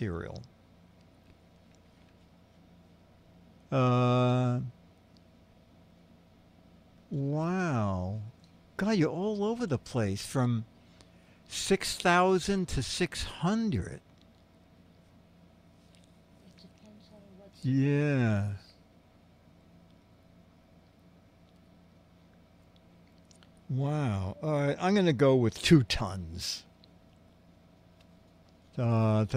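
An elderly man speaks into a microphone in short bursts, with long pauses between.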